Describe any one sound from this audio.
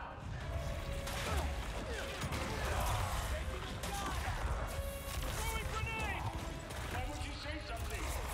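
Heavy blows thud and debris crashes during a fight.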